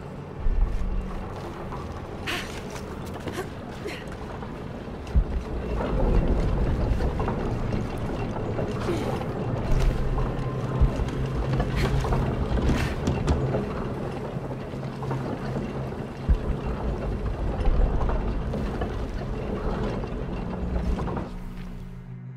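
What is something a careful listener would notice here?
Footsteps crunch over stone and creak on wooden planks.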